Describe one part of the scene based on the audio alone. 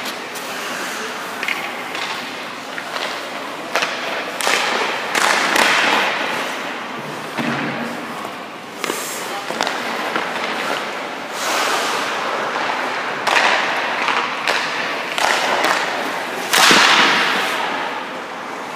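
Skates scrape and carve across ice, echoing in a large rink.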